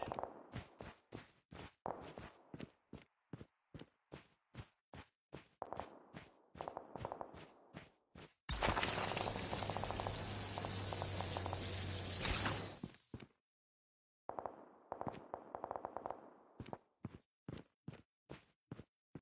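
Quick footsteps run over ground.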